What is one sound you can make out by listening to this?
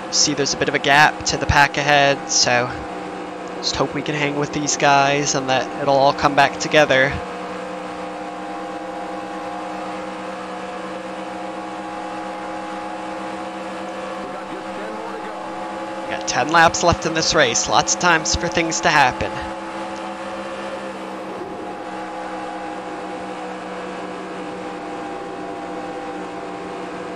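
A racing car engine drones at a steady high pitch.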